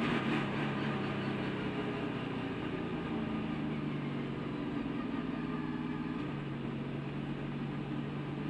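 Wind rushes past a speeding car.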